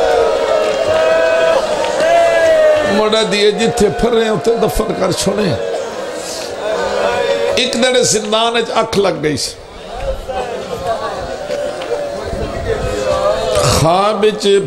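A middle-aged man speaks with feeling through a microphone, his voice echoing over a loudspeaker.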